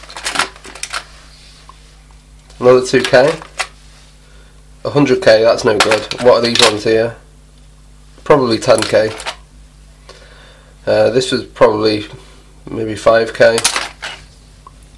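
Small parts clatter and scrape inside a plastic box.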